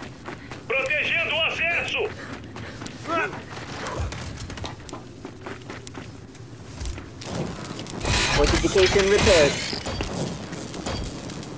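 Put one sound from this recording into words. Heavy armoured footsteps thud on the ground.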